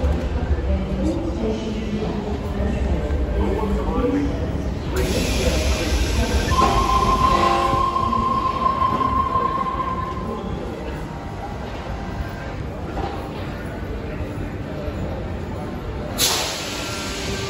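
A low steady rumble fills a large echoing station.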